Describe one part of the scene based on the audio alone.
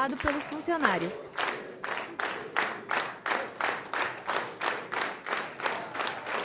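A crowd claps in steady rhythm together.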